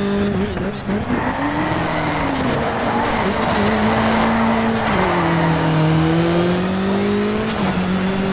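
Tyres skid and scrape on gravel and tarmac.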